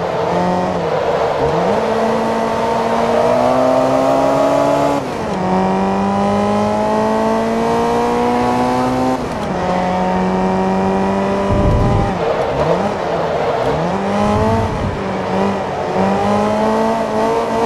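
Tyres squeal through tight corners.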